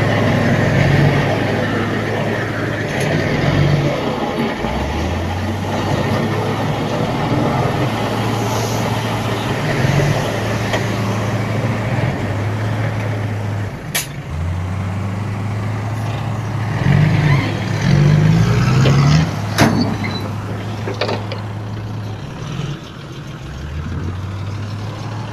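A diesel truck engine idles and rumbles nearby.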